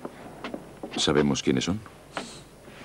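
A man speaks briefly in a low voice nearby.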